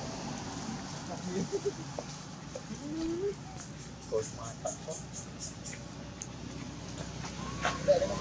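A baby monkey squeals and cries in short high calls nearby.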